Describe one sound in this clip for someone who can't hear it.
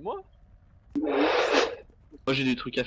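A burst of flames whooshes.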